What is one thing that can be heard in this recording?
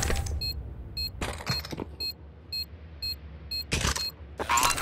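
An electronic bomb beeps quickly and steadily.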